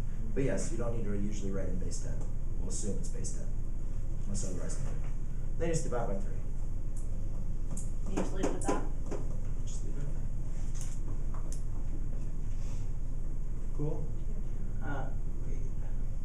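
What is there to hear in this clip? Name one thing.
A man speaks calmly and slowly, with pauses.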